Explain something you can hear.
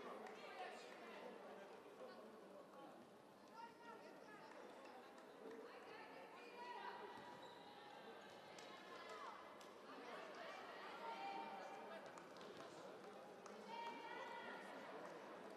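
Young women shout and call out to each other on a court.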